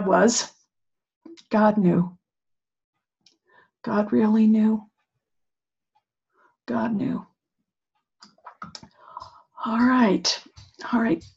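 An older woman speaks in short, halting phrases over a microphone, with pauses between them.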